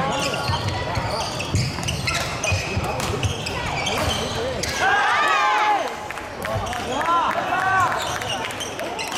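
A crowd of players and onlookers chatters in the background.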